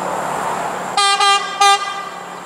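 A train horn sounds in short loud blasts.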